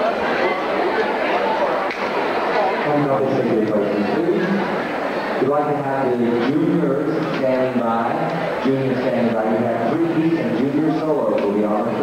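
Boots shuffle and tap on a wooden dance floor.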